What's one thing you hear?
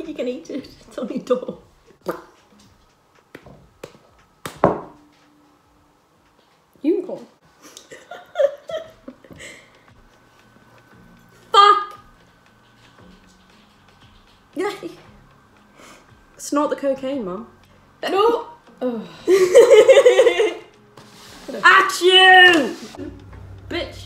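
A young woman talks and laughs close by with animation.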